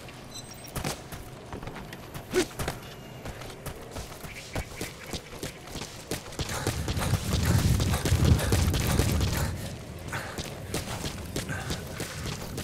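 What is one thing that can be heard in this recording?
Footsteps crunch quickly on dirt and gravel.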